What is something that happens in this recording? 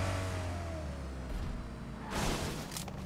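A video game sports car engine drones as the car drives.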